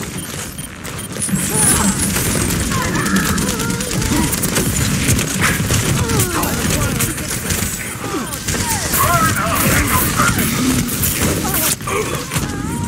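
Rapid energy weapon fire buzzes and crackles.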